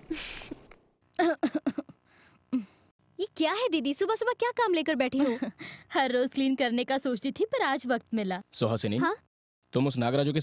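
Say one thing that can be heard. A woman speaks calmly up close.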